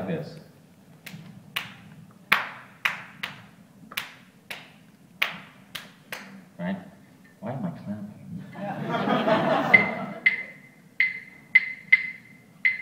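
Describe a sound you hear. A man beats a conga drum with his hands in sharp slaps.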